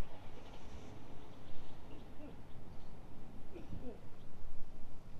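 A golf ball rolls softly across short grass.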